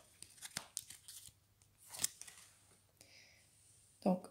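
A card is laid down on a table with a soft tap.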